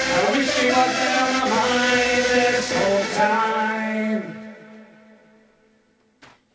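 A synthesizer keyboard plays a loud chord melody, then rings out and fades.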